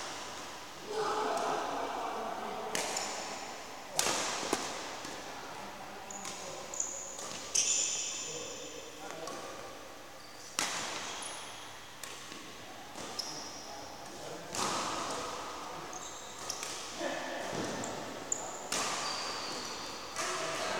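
A racket smacks shuttlecocks sharply in a large echoing hall.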